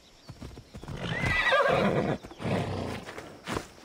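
A horse snorts and whinnies.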